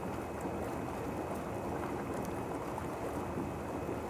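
Water splashes as a man climbs out of a hot tub.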